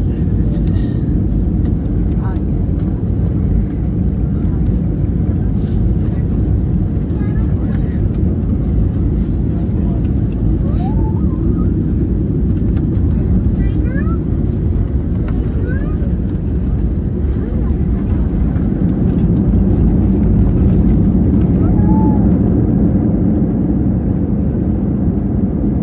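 Jet engines roar steadily inside an airliner cabin.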